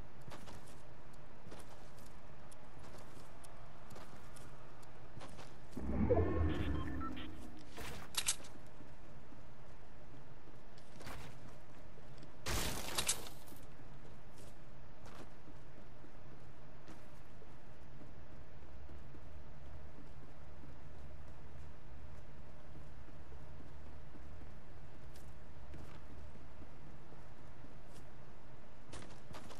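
Game footsteps patter quickly and steadily.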